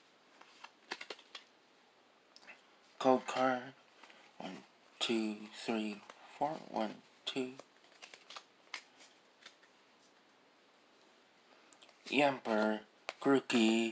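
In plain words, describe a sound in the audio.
Trading cards in a plastic sleeve rustle as hands handle them.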